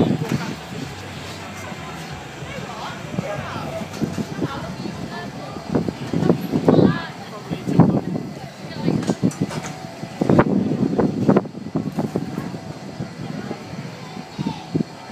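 A carousel turns with a steady mechanical rumble.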